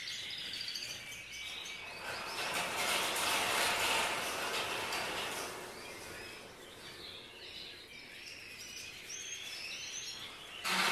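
Many small birds chirp and twitter all around.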